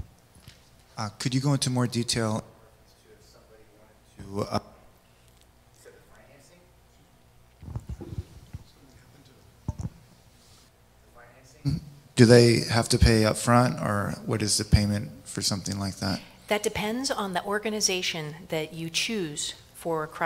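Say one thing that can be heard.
A woman speaks through a microphone in a large echoing hall, with pauses.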